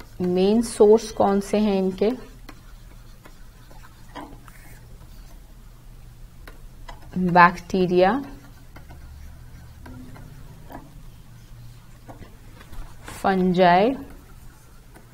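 A young woman speaks calmly and slowly into a close microphone, in short phrases with pauses.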